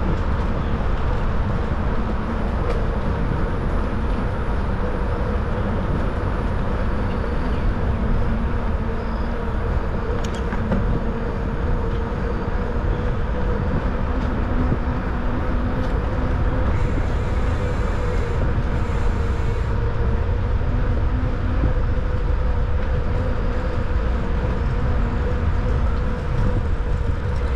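Wind buffets loudly and steadily, as if riding along outdoors.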